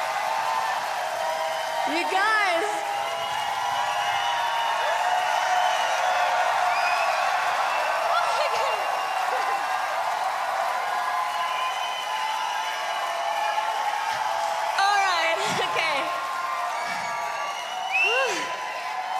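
A large crowd cheers and screams loudly in a big echoing hall.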